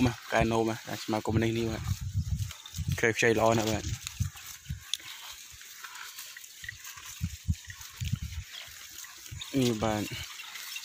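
A cow munches and tears at fresh grass close by.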